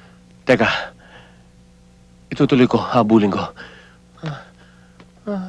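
A man speaks loudly and with agitation, close by.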